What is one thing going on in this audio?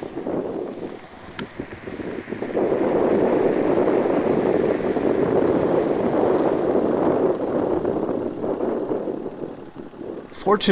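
A large grass fire roars steadily in the distance.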